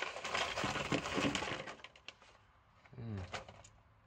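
Plastic parts clatter onto a hard surface.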